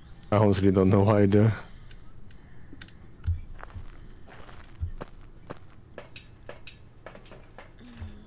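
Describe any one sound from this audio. Footsteps thud steadily along a corridor.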